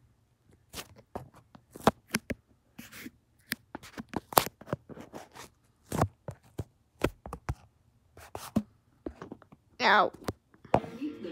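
A phone is handled with sharp rustles and knocks close by.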